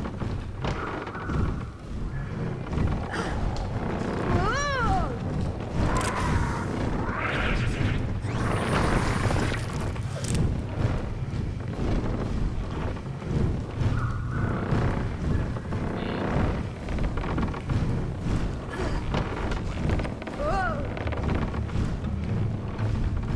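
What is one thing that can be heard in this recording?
Heavy metal stompers slam down again and again with loud thuds.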